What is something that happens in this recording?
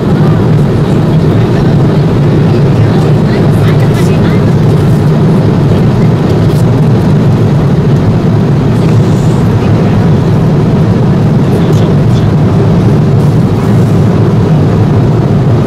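A jet engine drones with a steady low roar inside an aircraft cabin.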